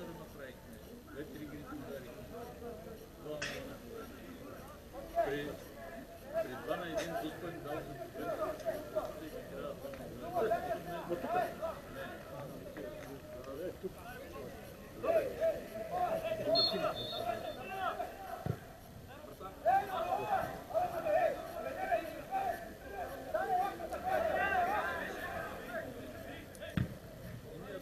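Several men chat in the distance outdoors, their voices carrying in a large open stadium.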